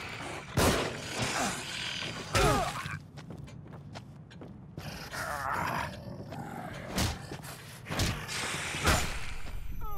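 Heavy blows thud and smack.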